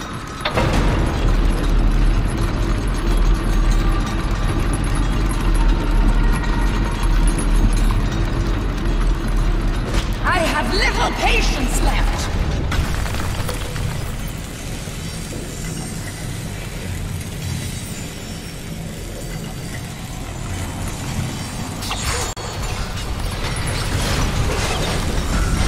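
Heavy machinery rumbles deeply.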